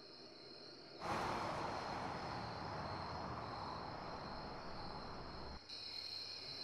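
A car engine runs with a loud rushing roar.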